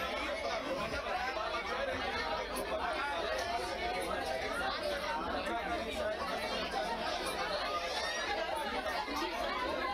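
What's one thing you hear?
A crowd of men and women chatter all around, close by.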